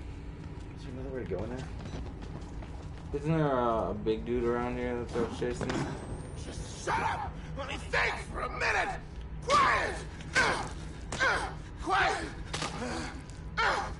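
Young men talk and exclaim with animation close to a microphone.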